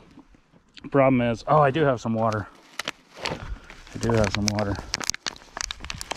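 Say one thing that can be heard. Fingers crumble and rub dry soil.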